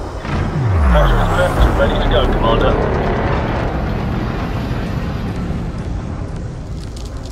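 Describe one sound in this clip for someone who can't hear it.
A spacecraft engine rumbles low and steadily.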